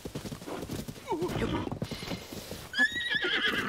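Hooves thud as a horse gallops over grass.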